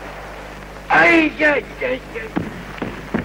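A man speaks.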